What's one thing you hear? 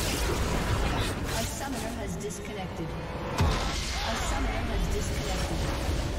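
Game battle effects clash and crackle.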